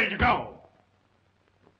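An elderly man speaks urgently in a low voice, close by.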